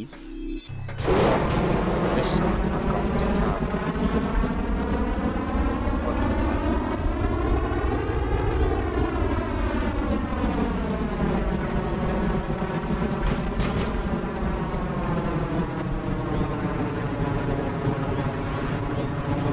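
A jet engine roars loudly, rising in pitch and then settling.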